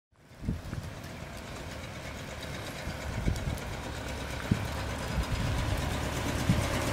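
Tyres roll over rough asphalt.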